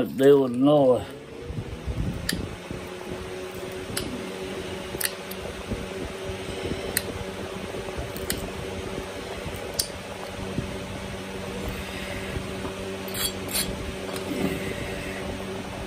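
A knife scrapes and shaves wood with small clicks.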